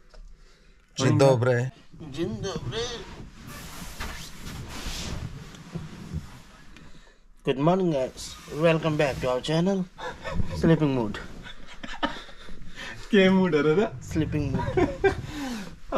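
A young man talks close by with animation, in bursts.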